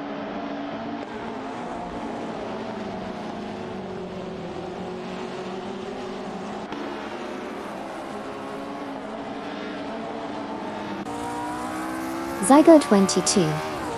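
Racing car engines drone and whine steadily.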